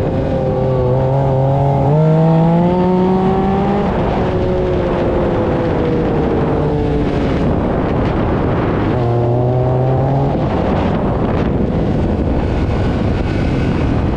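An engine roars and revs up and down close by.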